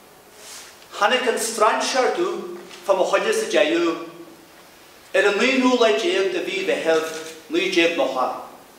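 A man speaks loudly and expressively on a stage, in an echoing hall.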